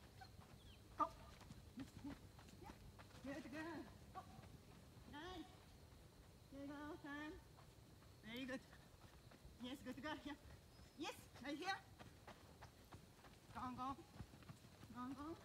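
A woman calls out short, lively commands to a dog outdoors.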